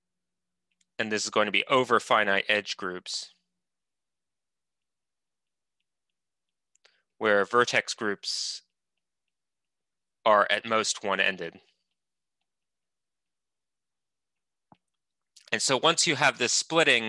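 A man speaks calmly into a microphone, heard through an online call, in short bursts with pauses.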